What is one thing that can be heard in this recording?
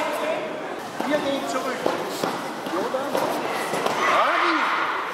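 An elderly man speaks with animation in a large echoing hall.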